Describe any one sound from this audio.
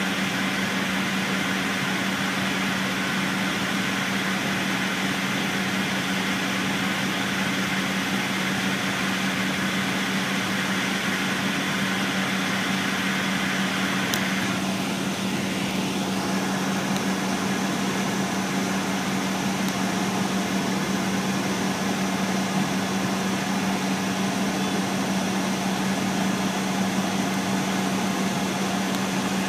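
A vehicle engine hums steadily, heard from inside.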